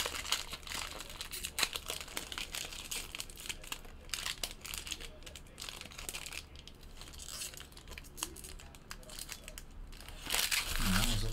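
Plastic wrapping crinkles and rustles close by.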